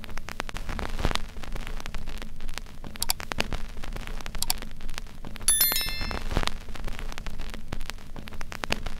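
A vinyl record crackles and pops softly as it spins.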